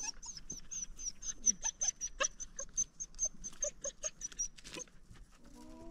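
A dog's paws scrabble over loose rock.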